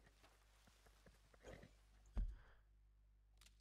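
Footsteps rustle through tall grass and undergrowth.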